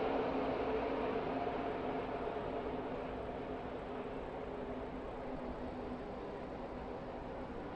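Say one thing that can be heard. Many racing engines roar together at high speed.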